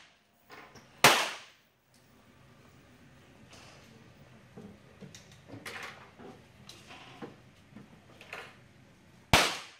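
A .22 semi-automatic pistol fires single sharp shots.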